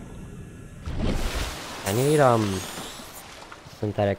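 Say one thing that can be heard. Water splashes as a swimmer breaks the surface.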